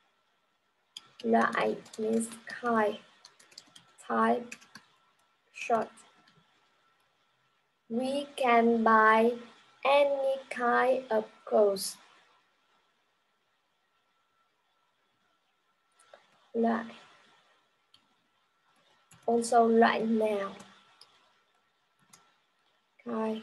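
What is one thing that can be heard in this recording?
A young woman speaks clearly and calmly into a close microphone, as if teaching, with pauses between phrases.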